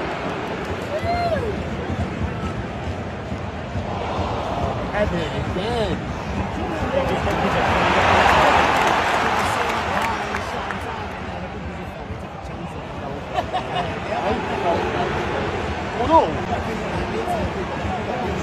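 Fans whistle sharply from the crowd.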